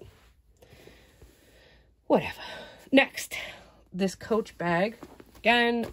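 A satin cloth bag rustles as hands pull it.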